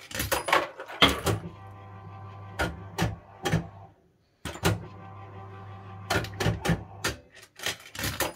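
A fruit machine's reels spin with a steady hum.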